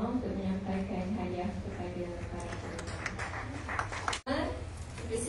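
A young woman speaks calmly through a microphone in an echoing hall.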